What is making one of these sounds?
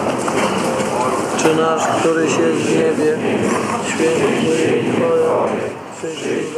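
A large crowd of men sings together outdoors.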